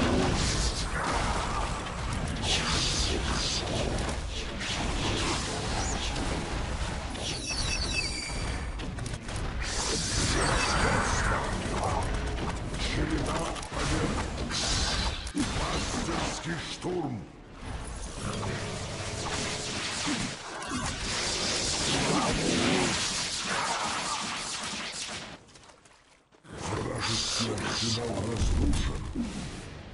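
Spells crackle and burst in quick succession.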